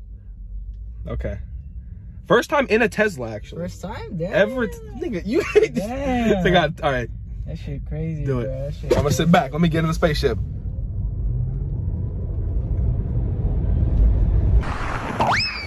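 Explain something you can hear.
A car engine hums low and steady from inside the cabin.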